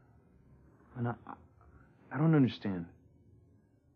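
A young man speaks sharply up close.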